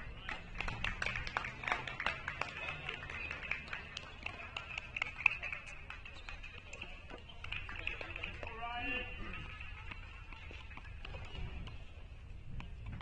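A tennis player's shoes scuff and tap on a hard court.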